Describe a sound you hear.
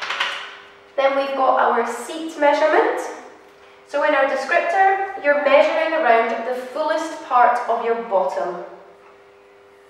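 A young woman speaks clearly and calmly, close by.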